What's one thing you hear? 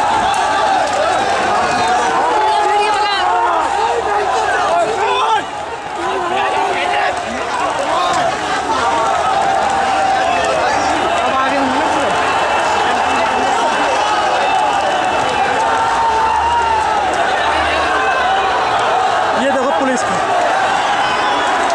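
Many feet run on a paved road.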